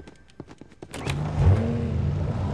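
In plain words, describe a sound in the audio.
A vehicle engine starts up and rumbles.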